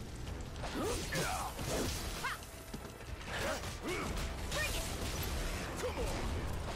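Blades clash and strike during a fight.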